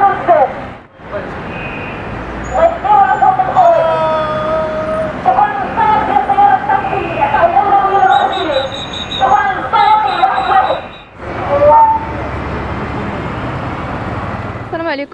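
Car traffic rumbles past on a street nearby.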